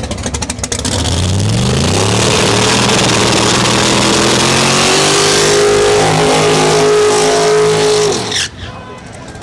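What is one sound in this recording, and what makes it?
A race car engine revs up to a loud, rising roar.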